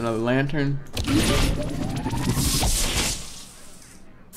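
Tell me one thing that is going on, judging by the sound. A magical whooshing effect swells and rings out as a card is played.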